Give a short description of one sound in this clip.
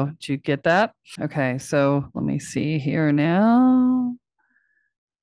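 A woman speaks into a close microphone with animation, her voice rising and drawn out at the end.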